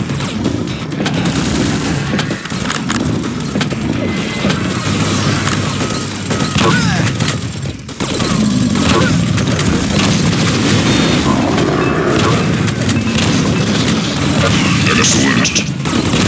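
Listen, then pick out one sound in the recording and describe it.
Weapons fire in rapid bursts with sharp blasts.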